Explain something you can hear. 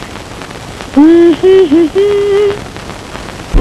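A young woman hums a short, gentle tune.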